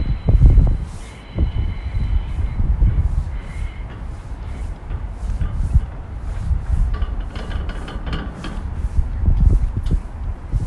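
Footsteps tap on a metal walkway.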